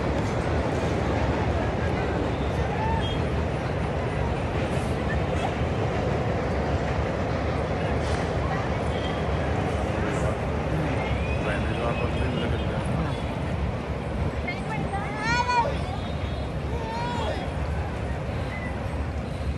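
Wind blows in gusts over open water outdoors.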